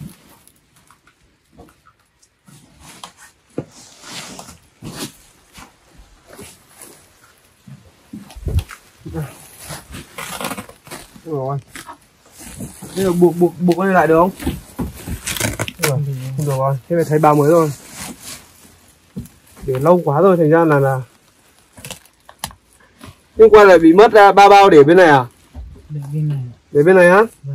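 Plastic sacks rustle and crinkle as they are handled.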